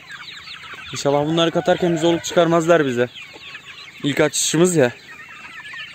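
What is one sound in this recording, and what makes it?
A rooster crows loudly.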